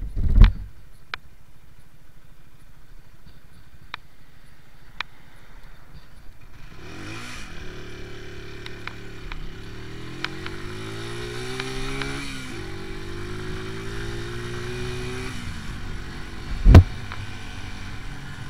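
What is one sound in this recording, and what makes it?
A motorcycle engine idles low, then revs up and accelerates through the gears.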